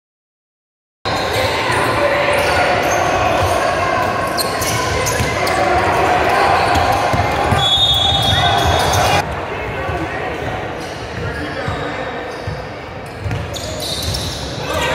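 Young men shout and call out across the court.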